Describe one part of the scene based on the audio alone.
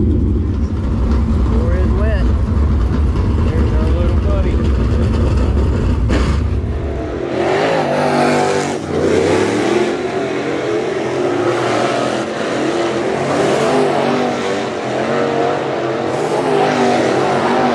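Race car engines roar loudly, rising and falling in pitch.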